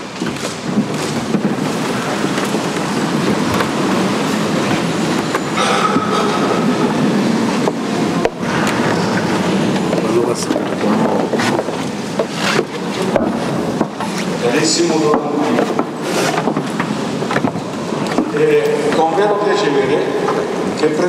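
A group of people sings together in a large, echoing hall.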